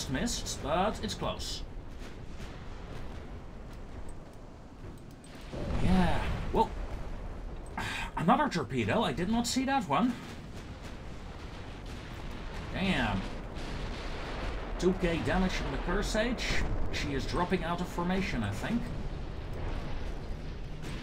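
Heavy naval guns fire in booming blasts.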